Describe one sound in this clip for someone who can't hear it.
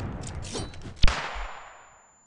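A stun grenade goes off with a loud bang.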